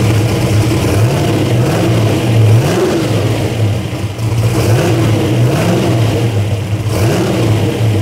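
An engine revs up and down briefly.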